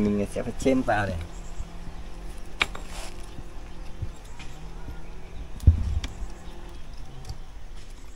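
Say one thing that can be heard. A hoe strikes and scrapes against a mud brick wall.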